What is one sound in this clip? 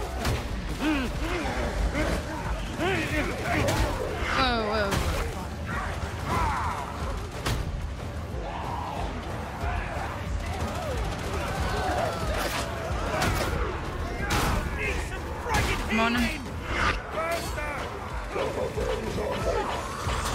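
Rapid gunfire blasts again and again.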